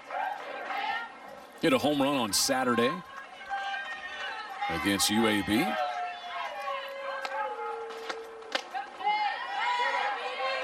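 A crowd of spectators cheers and chants loudly outdoors.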